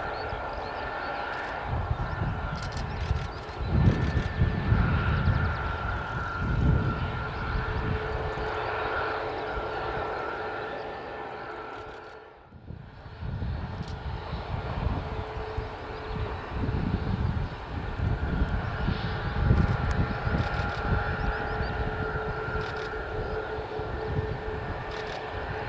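A jet airliner's engines whine and roar steadily as the plane taxis nearby.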